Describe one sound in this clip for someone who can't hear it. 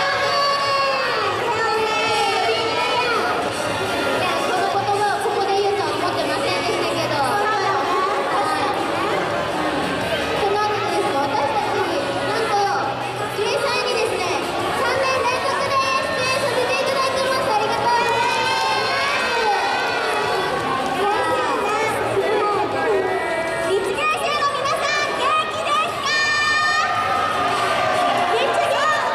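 Pop music plays loudly through loudspeakers.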